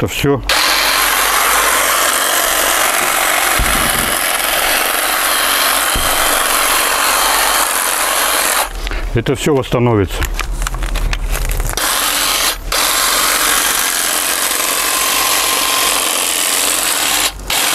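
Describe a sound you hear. An electric hedge trimmer buzzes loudly, briefly winding down and starting up again.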